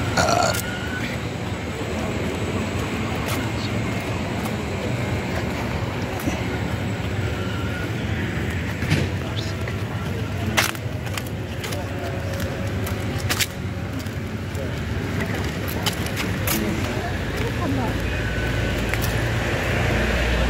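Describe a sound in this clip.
Footsteps walk along paving stones outdoors.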